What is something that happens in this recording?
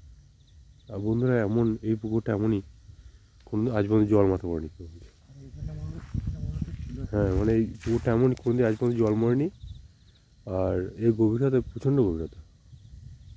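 A young man talks close by, with animation.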